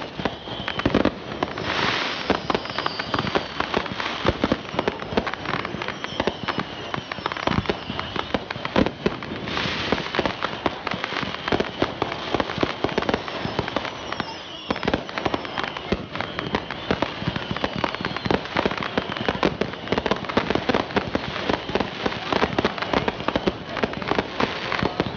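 Fireworks bang and crackle in rapid bursts.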